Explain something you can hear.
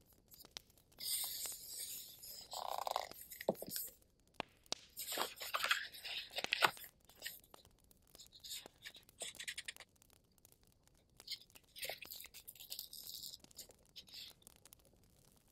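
Paper sheets rustle and crinkle close by as they are handled.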